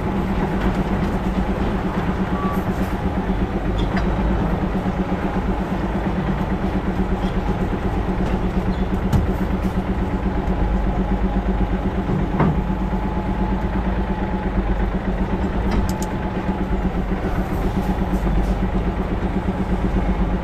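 A truck's diesel engine rumbles steadily up close.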